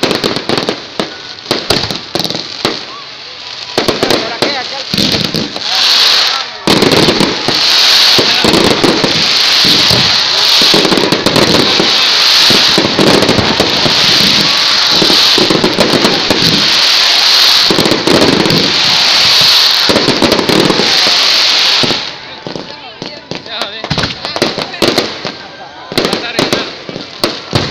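Fireworks crackle and bang loudly nearby.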